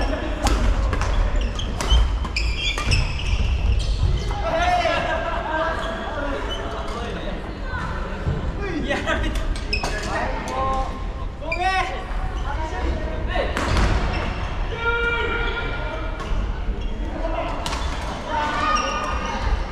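Voices of men and women call out in a large echoing hall.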